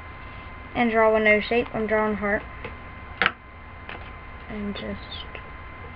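A young girl speaks in a high, lively voice close to the microphone.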